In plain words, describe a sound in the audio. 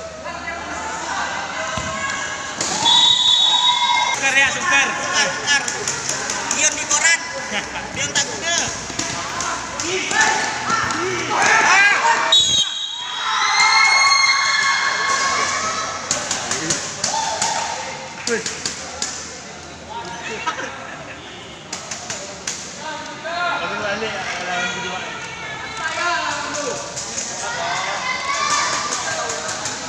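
Young men shout to each other in an echoing hall.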